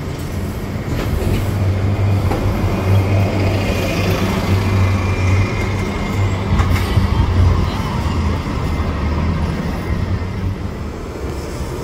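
A bus engine rumbles loudly close by and pulls away.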